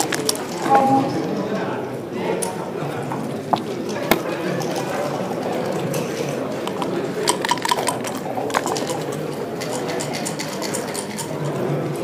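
Dice rattle and tumble across a wooden board.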